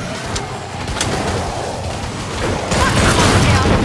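A pistol fires a sharp shot.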